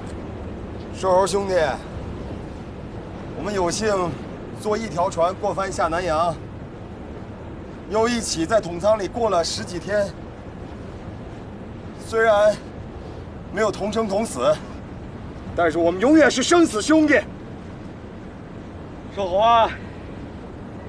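A young man speaks slowly and with grief, close by.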